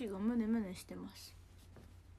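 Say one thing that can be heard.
A young woman hums a short wavering tune close by.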